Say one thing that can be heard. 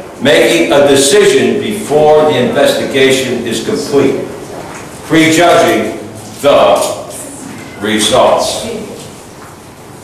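A middle-aged man speaks clearly and steadily, as if teaching, close to a microphone.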